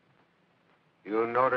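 A man speaks loudly and urgently nearby.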